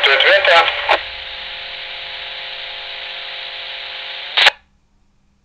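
Static hisses with a faint hum from a two-way radio.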